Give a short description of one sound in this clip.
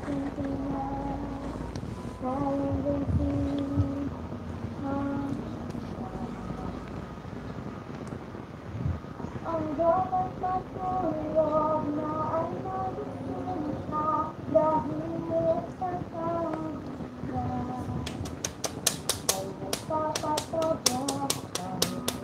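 A middle-aged woman sings close to a microphone.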